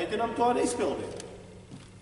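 A man speaks calmly close by in an echoing hall.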